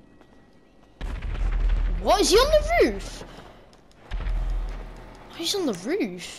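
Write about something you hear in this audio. A gun fires loudly with a booming echo.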